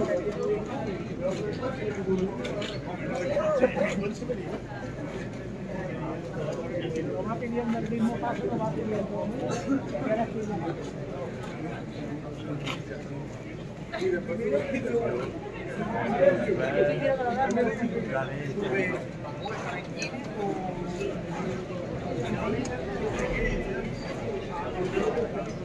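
A crowd of men and women murmurs and talks close by, outdoors.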